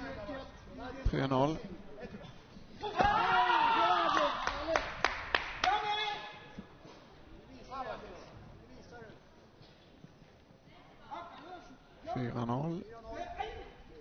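A young man shouts sharply in a large echoing hall.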